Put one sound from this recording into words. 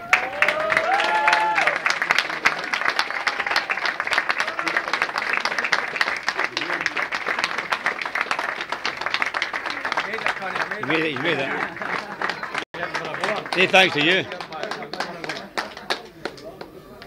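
A crowd claps and applauds loudly.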